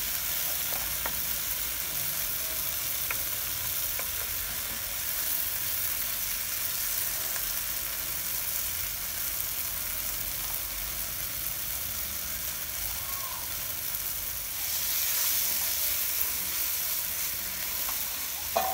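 A spoon scrapes and taps against a frying pan.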